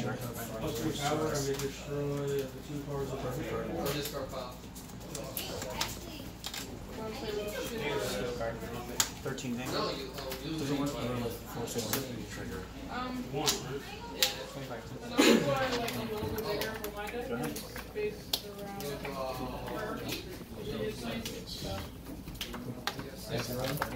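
Playing cards are shuffled in the hands, riffling softly.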